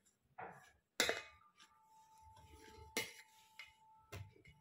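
Bangles clink against a metal bowl.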